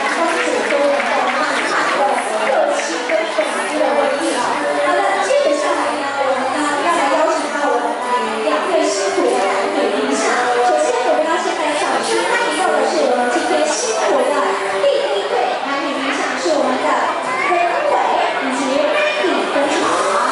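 A crowd of diners chatters loudly in a large echoing hall.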